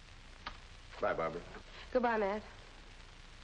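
A young woman speaks softly and tensely.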